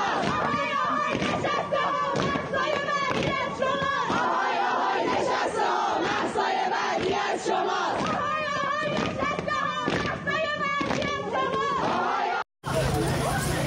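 A crowd of young people chants loudly in unison.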